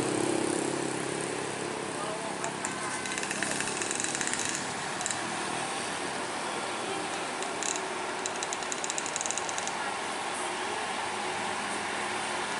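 A truck engine rumbles as it approaches slowly.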